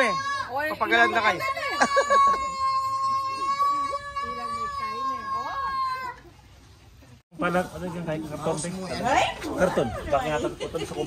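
Several middle-aged women chat and laugh with animation close by.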